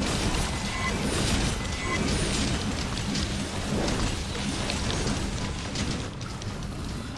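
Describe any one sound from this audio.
Blades clash and slash in quick hits.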